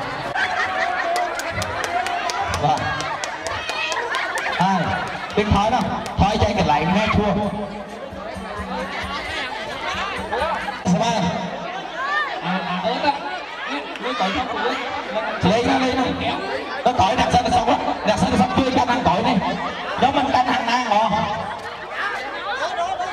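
A large crowd outdoors chatters and cheers.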